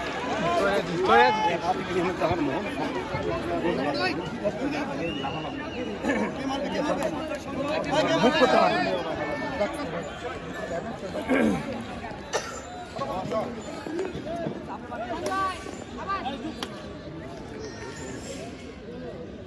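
A crowd of young men and boys talk and shout outdoors.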